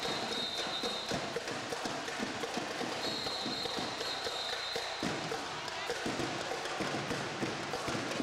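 A crowd cheers and chatters loudly.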